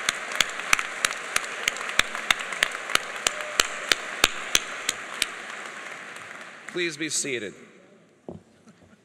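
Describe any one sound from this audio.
An audience applauds in a large hall, and the applause fades out.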